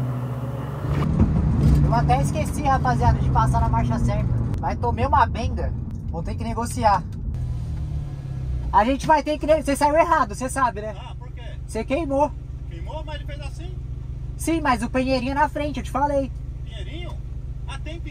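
A car engine idles with a low steady hum, heard from inside the car.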